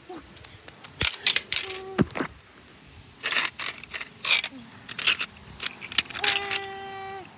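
A small plastic toy clicks and clatters against concrete.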